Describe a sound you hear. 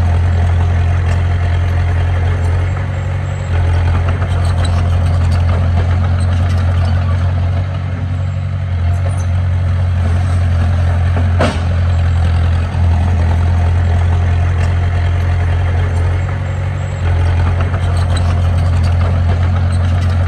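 A small bulldozer's diesel engine rumbles steadily nearby.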